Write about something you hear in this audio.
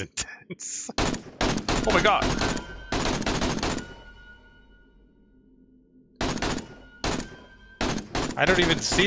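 Rifle shots fire in quick bursts.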